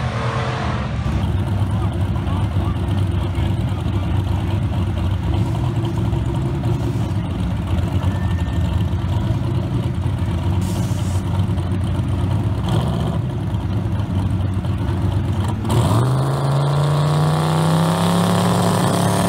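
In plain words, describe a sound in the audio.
Car engines idle nearby with a deep, rough rumble.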